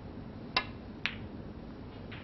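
Snooker balls clack together.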